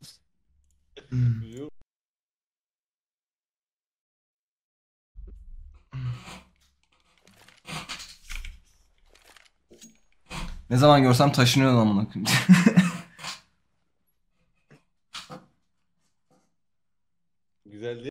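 A young man talks with animation close to a microphone, sometimes shouting.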